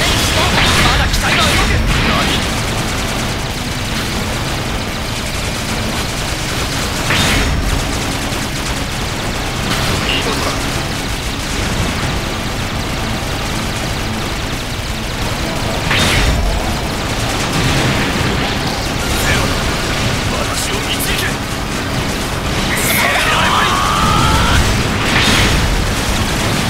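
Explosions boom and crash.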